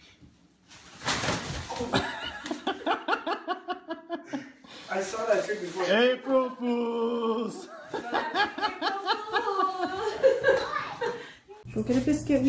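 A woman laughs loudly and heartily close by.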